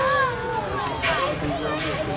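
Steam hisses loudly from a locomotive's cylinders.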